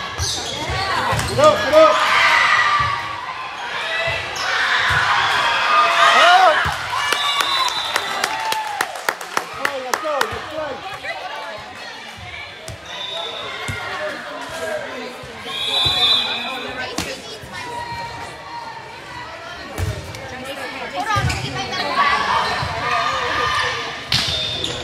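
A volleyball thuds against hands.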